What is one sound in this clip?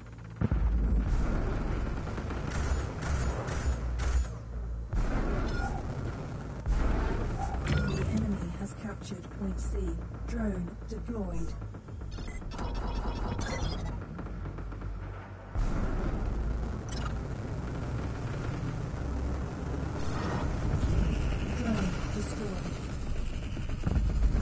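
A spacecraft engine hums with a low rumble.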